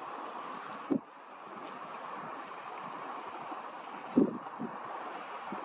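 Small waves lap and ripple steadily on open water.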